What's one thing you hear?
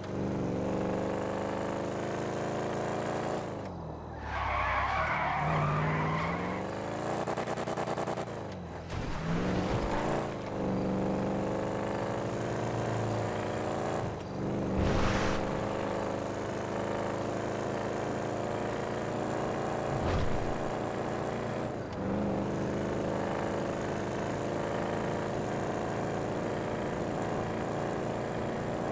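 A car engine roars steadily, rising and falling in pitch as the gears shift.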